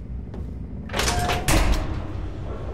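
A heavy metal door grinds open with a loud clank.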